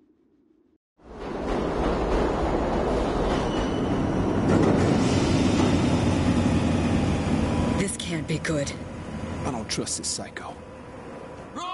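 A subway train rumbles loudly through a tunnel.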